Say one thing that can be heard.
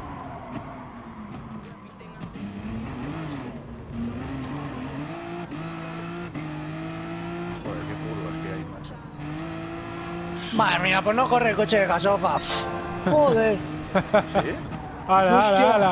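A racing car engine revs hard and climbs through the gears.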